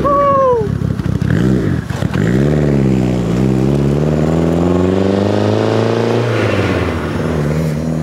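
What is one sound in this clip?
A car engine revs hard and roars as the car pulls away.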